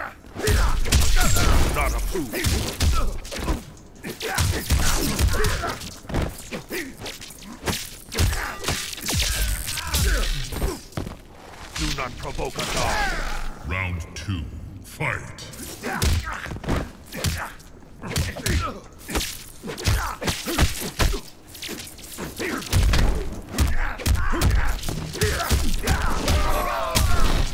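Electric crackles and zaps burst out during the fight.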